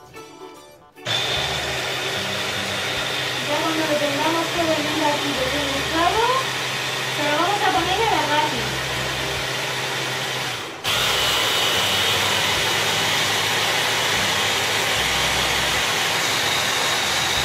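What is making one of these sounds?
An electric hand blender whirs steadily.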